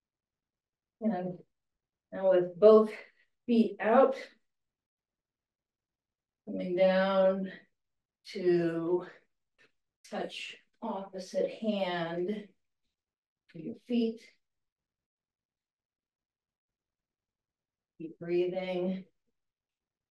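An elderly woman speaks calmly into a microphone, giving instructions.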